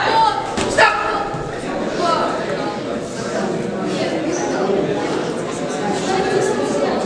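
A crowd of men and women shout and cheer in an echoing hall.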